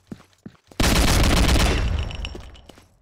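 A gun fires a loud burst.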